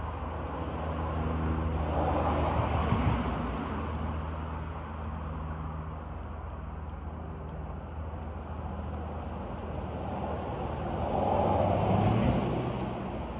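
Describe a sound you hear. Wind rustles through tall trees outdoors, rising in gusts.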